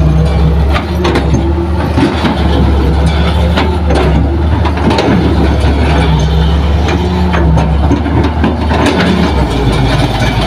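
A heavy truck's diesel engine rumbles steadily close by.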